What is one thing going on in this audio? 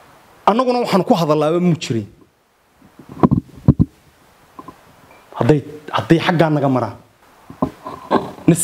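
A man speaks firmly into close microphones, in short bursts with pauses.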